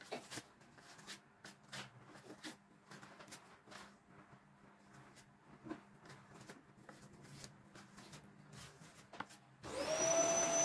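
A trowel scrapes across a plastered wall.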